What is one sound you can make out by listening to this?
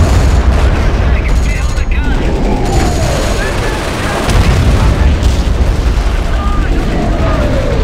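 A flamethrower roars in a burst of fire.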